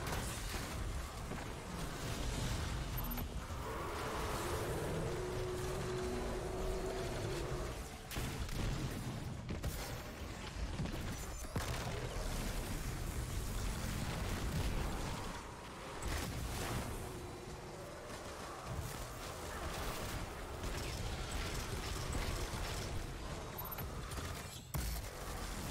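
Electric energy bursts crackle and boom.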